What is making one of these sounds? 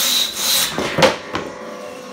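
A piece of wood thuds onto the floor.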